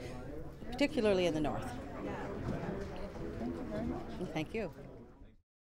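A middle-aged woman speaks calmly close to a microphone.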